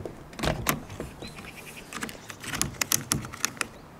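Plastic clamps on a bike rack click and rattle.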